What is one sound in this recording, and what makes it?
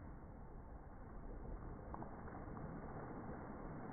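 Water splashes loudly as someone lands in a pool.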